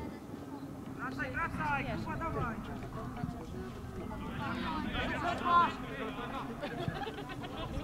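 Young players shout to each other across an open field, some distance away.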